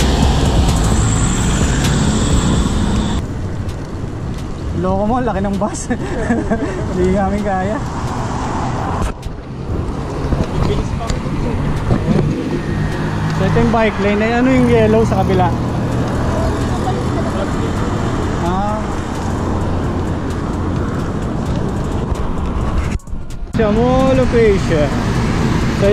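Wind rushes loudly past a moving bicycle outdoors.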